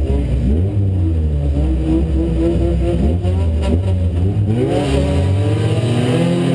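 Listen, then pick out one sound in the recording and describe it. A car engine roars loudly close by, revving up and down.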